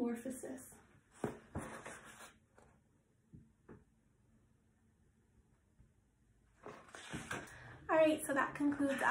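A young woman reads aloud calmly and close by.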